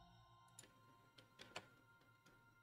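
Soft menu clicks tick quietly.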